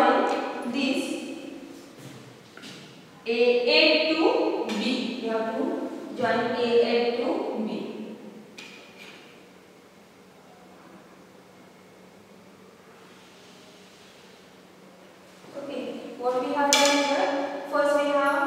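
A woman explains calmly and clearly, close by.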